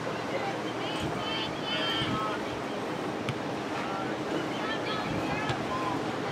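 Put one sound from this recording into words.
Young women shout to each other from a distance outdoors.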